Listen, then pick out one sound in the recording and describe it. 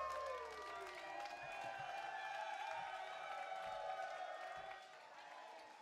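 A string band plays fiddle, banjo, guitar and double bass in a large hall.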